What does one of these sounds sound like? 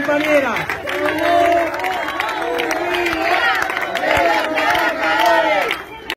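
A crowd of men and women chant loudly together close by.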